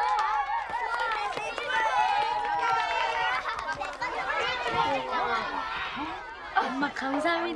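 A group of children sing together.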